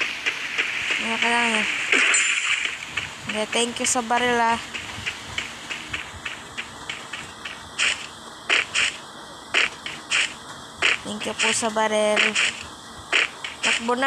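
Footsteps run quickly on a hard surface.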